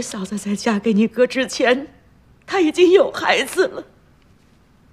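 An elderly woman speaks tearfully and with distress, close by.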